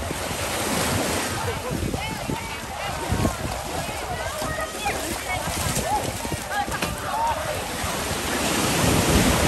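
A crowd of young people chatter and shout outdoors at a distance.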